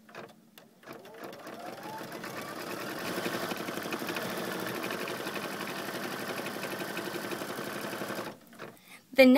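An embroidery machine stitches with a steady, rapid whirring hum.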